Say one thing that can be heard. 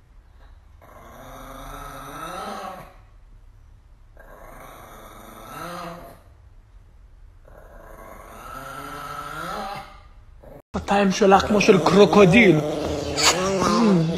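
A young man howls in long, rising calls close by.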